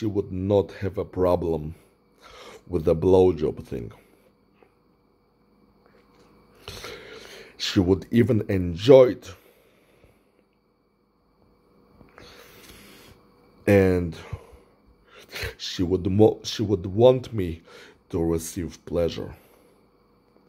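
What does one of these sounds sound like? A man talks calmly and close up, in short bursts with pauses.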